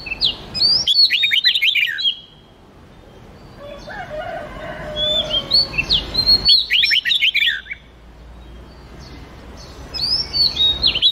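Songbirds sing loud, rapid whistling phrases close by.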